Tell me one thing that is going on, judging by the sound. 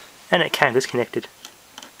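A small metal clip clicks as it is snapped onto a wire.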